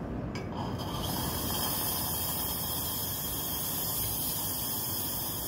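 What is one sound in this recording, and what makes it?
An espresso machine hisses steadily.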